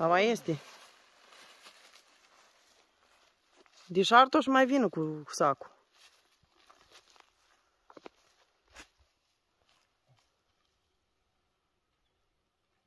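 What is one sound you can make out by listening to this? A person walks with soft footsteps over grass.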